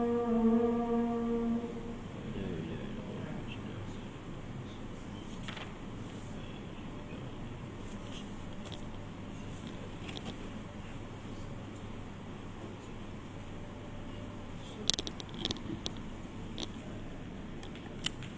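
A man chants in a melodic voice close to a microphone.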